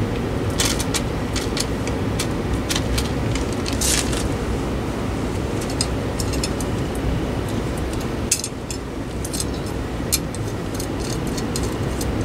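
Small metal parts of a light fixture click and clink.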